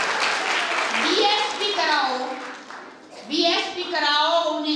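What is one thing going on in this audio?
An elderly woman speaks with animation into a microphone, heard through loudspeakers.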